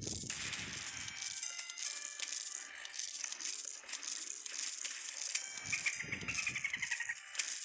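Game plants fire peas with quick, repeated soft pops.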